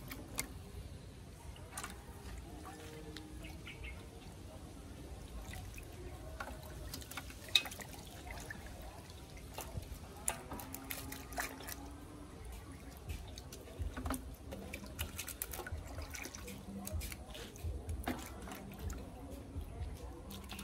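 Hands splash and swish through water in a metal basin.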